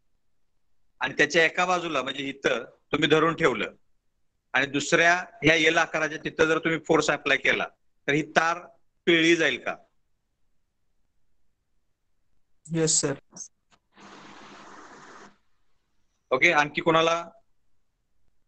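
A man speaks calmly through an online call, in bursts with pauses.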